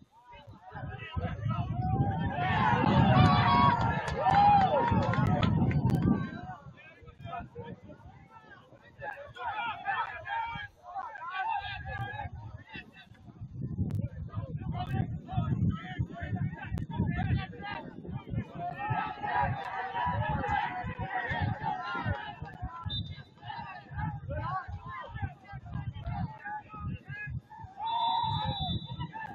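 Young players shout to each other across the field.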